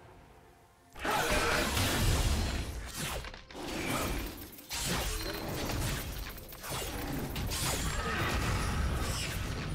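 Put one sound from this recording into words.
Game sound effects of blows and spells clash.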